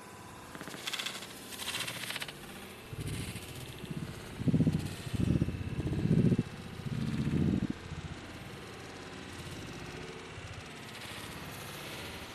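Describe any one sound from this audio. A firecracker fuse fizzles and hisses.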